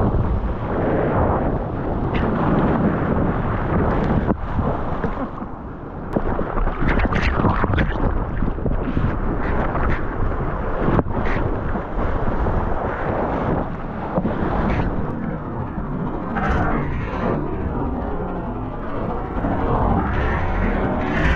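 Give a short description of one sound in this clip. A wave breaks and rushes nearby.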